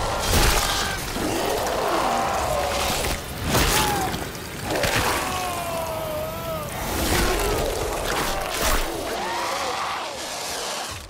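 A creature snarls and shrieks.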